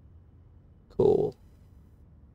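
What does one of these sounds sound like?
A young man says a short word into a microphone, close by.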